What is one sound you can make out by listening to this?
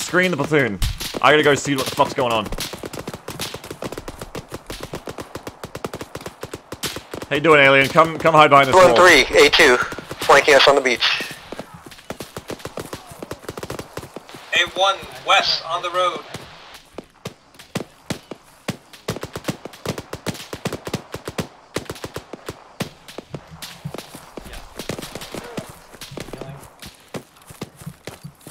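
Footsteps crunch quickly over dry ground.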